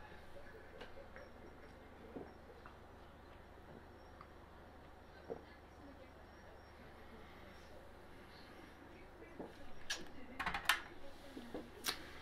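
A young man sips a drink and swallows.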